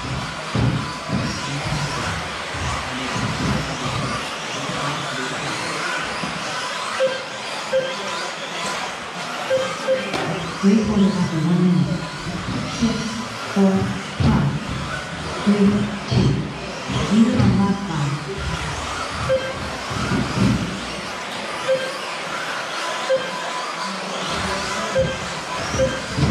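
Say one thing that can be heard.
Small radio-controlled cars whine and buzz as they race around in an echoing hall.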